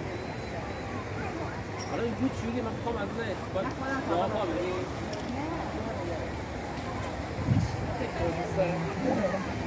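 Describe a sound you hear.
A crowd of people chatter at a distance outdoors.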